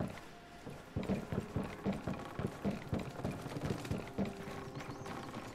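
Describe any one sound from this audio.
Footsteps thud down wooden stairs.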